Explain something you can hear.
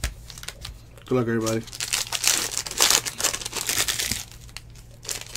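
A plastic wrapper crinkles and rustles as it is torn open.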